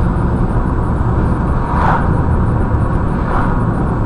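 A car passes by in the opposite direction.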